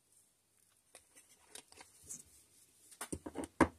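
A plastic screw cap is twisted off a small glass bottle.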